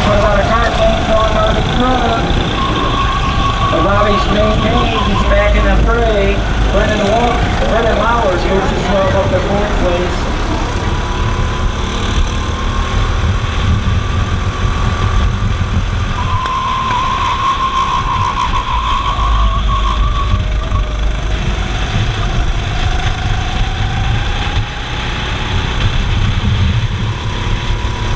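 A kart engine revs loudly close by, rising and falling in pitch through the corners.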